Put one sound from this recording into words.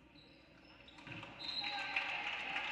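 A crowd cheers in an echoing gym.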